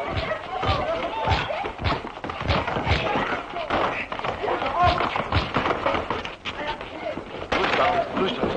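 Men and women shout and clamour excitedly.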